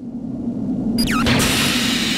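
An energy charge hums and whooshes.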